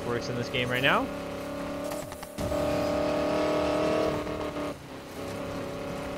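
A powerful car engine roars and revs up.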